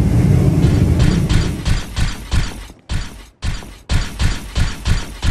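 Armored footsteps clank along a stone floor.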